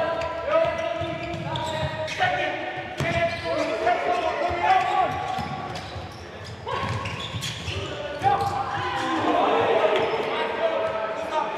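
A ball thuds as it is kicked on a hard indoor court.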